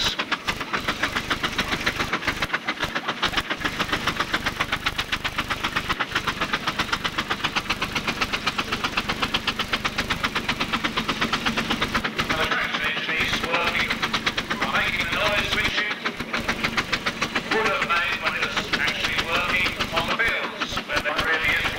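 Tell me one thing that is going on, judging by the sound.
A diesel truck engine rumbles.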